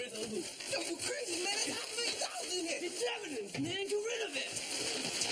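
Two men argue loudly, heard through an old, hissy recording.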